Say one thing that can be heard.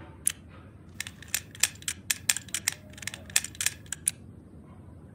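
The dials of a metal combination lock click as they turn.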